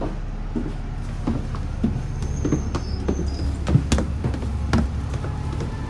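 Footsteps thud down hard stairs.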